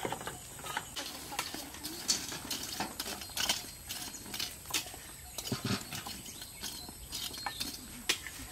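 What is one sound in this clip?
Metal tongs scrape and clink against burning charcoal.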